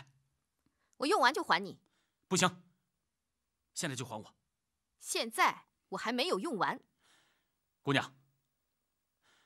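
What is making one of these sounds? A young woman answers calmly.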